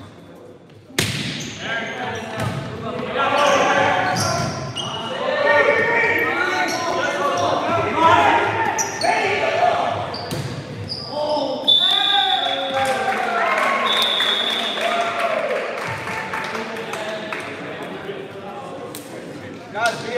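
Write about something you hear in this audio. A volleyball smacks off hands.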